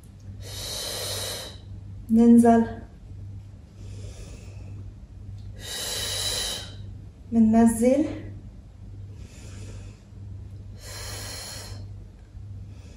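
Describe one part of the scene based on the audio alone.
A young woman breathes out heavily in rhythm with exercise.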